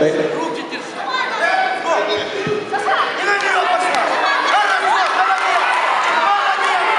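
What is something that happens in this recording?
A crowd of children and adults shouts and cheers in a large echoing hall.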